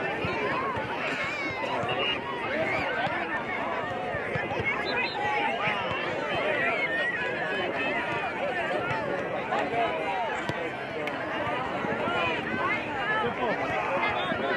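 A crowd of young voices chatters and shouts outdoors across a wide open field.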